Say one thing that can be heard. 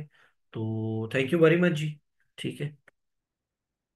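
A man speaks close to a microphone, briefly and with emphasis.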